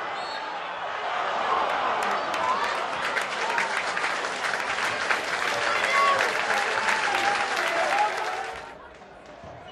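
A large football crowd claps and applauds.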